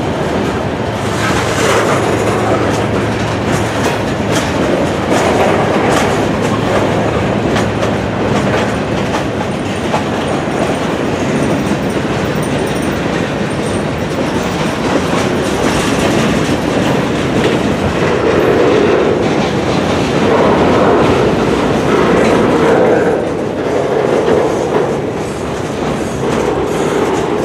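A freight train rumbles past close by.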